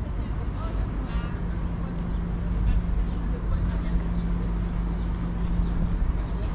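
Wind rumbles steadily across open water outdoors.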